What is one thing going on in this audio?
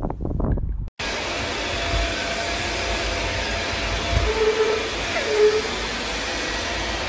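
A robot vacuum hums steadily.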